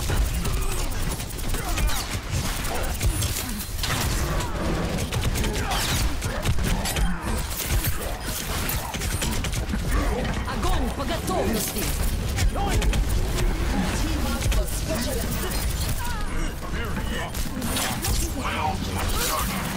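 Gunfire and energy weapons blast rapidly in a video game.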